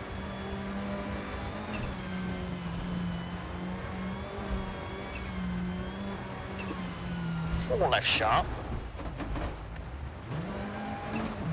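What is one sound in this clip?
A car engine drones steadily at high revs, drops away briefly and then revs up again.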